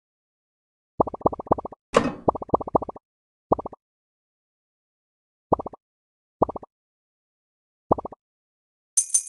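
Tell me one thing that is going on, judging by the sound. Short game chimes ring each time a ball is picked up.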